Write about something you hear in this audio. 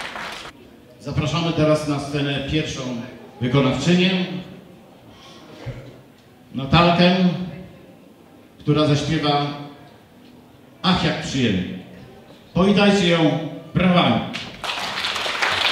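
A middle-aged man announces with animation through a microphone and loudspeakers in an echoing hall.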